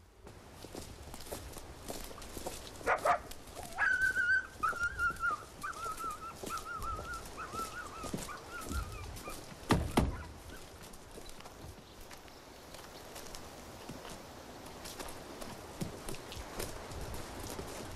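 Boots tread on a dirt road as several men walk.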